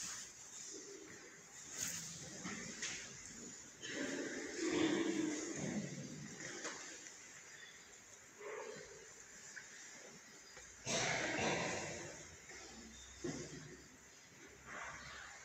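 A man speaks slowly in a large echoing hall.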